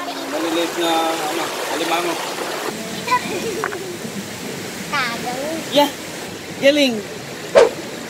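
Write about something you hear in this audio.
A young child talks close by with animation.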